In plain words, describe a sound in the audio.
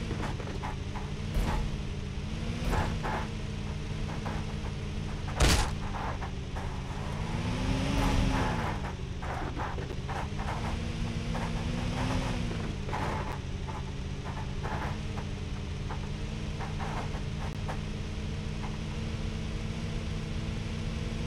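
Tyres rumble and bump over dirt and gravel.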